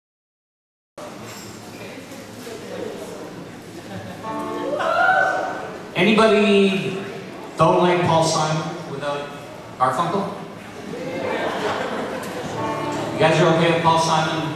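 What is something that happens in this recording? A live band plays a lively song on stage.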